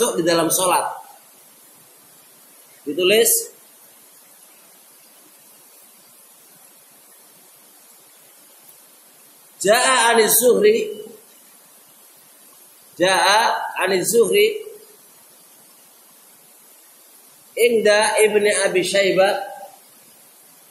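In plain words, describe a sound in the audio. A man calls out loudly in short chanted phrases, with pauses between them.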